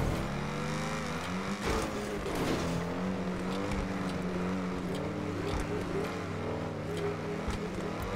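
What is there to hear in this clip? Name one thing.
Tyres rumble over a metal mesh track.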